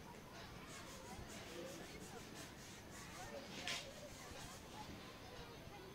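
Children chatter and call out nearby.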